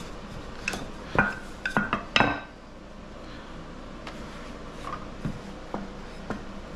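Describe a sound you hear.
A rolling pin rolls softly over dough.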